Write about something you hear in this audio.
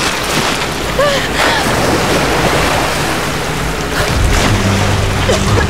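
Heavy rain pours and splashes into water.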